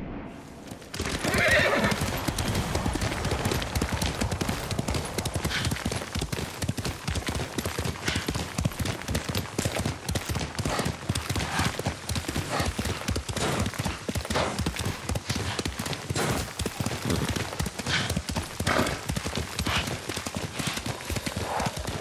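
Horse hooves gallop rapidly over a dirt path.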